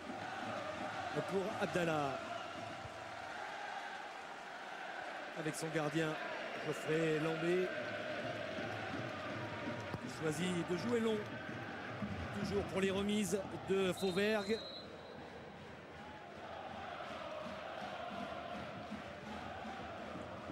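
A large stadium crowd roars and chants throughout.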